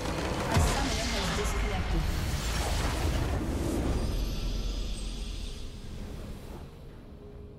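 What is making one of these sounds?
A large structure explodes with a loud rumbling crash.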